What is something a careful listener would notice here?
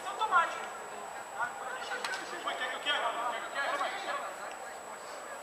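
Young men shout to each other outdoors across a football pitch.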